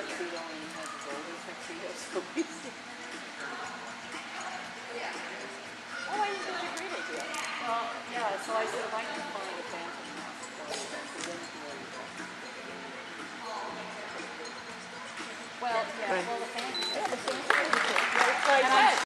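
A woman calls out commands to a dog in a large echoing hall.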